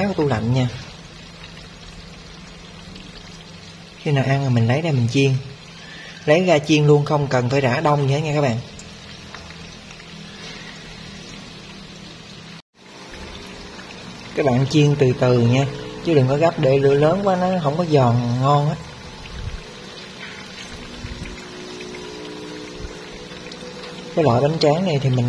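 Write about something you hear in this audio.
Hot oil sizzles and crackles steadily.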